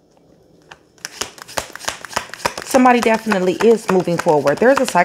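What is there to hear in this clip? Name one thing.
Cards are shuffled and flicked, clicking rapidly.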